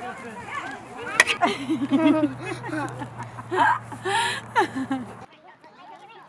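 A woman laughs and cheers loudly.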